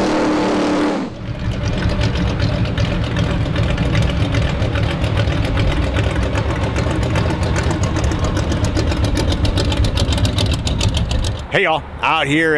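A truck engine rumbles loudly as it drives slowly across open pavement.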